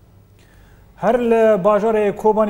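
A man speaks calmly and clearly into a microphone, as if reading out the news.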